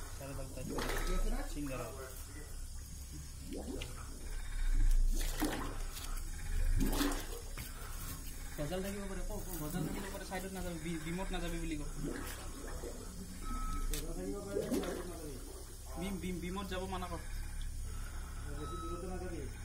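Water churns and splashes.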